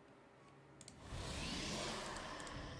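Game sound effects swell into a steady whooshing hum.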